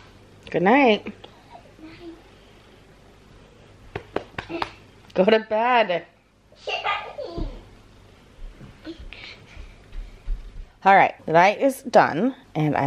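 A young girl squeals and chatters excitedly close by.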